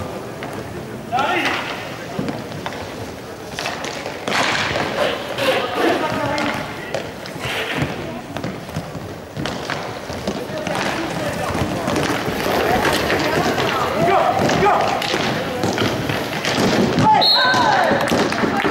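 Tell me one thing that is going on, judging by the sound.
Hockey sticks clack against a ball and against each other.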